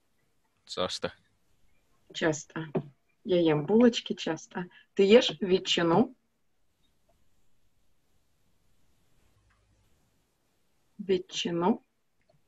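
A woman speaks calmly and clearly through an online call, in short phrases with pauses.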